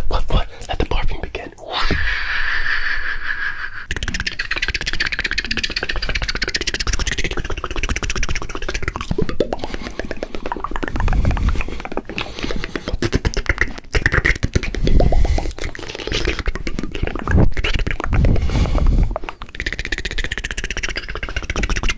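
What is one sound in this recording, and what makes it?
A man makes wet mouth and kissing sounds right up close.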